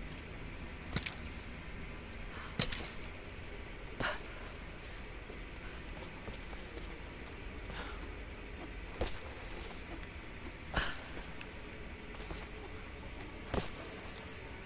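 Boots thud on rock as a figure jumps and lands.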